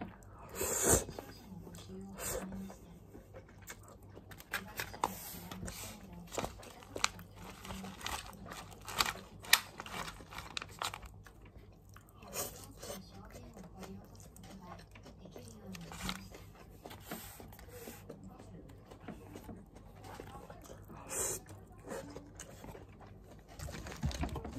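A man chews noisily close by.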